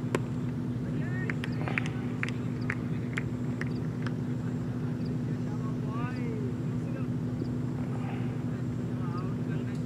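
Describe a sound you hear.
Young men call out across an open field.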